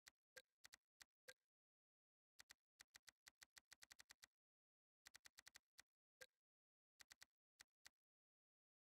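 Soft menu ticks click as selections change.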